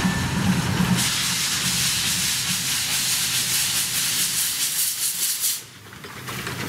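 Steam hisses loudly from a steam locomotive.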